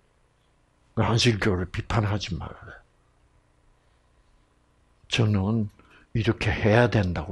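An elderly man speaks with animation into a microphone, in short bursts with pauses.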